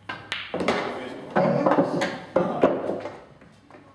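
A pool cue strikes the cue ball.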